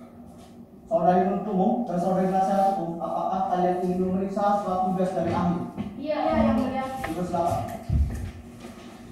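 A woman speaks calmly into a microphone in a room that echoes slightly.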